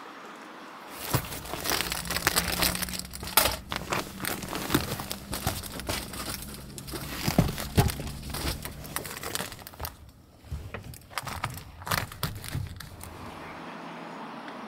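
Padded fabric rustles and crinkles as it is handled close by.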